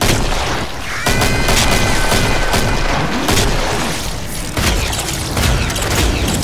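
A pistol fires rapidly in quick bursts.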